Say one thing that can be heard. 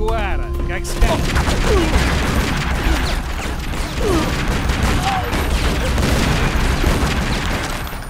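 Gunshots rattle in quick bursts.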